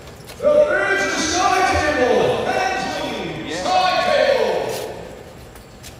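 A man announces loudly over a loudspeaker, echoing through a large hall.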